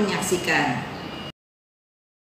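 A middle-aged woman speaks calmly close to a microphone.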